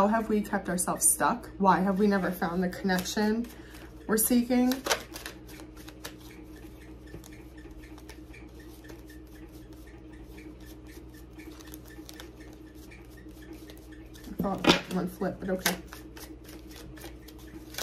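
Paper banknotes rustle and flick between hands.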